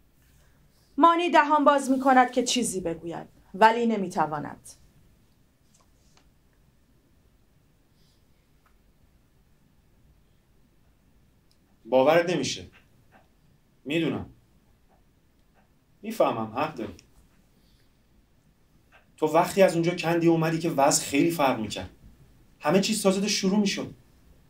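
A man reads aloud calmly, in short phrases with pauses between them.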